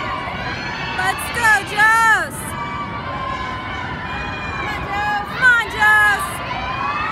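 Spectators cheer and whoop loudly in a large echoing hall.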